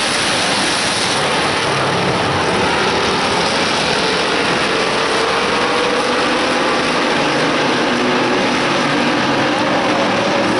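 Loud race car engines roar steadily close by.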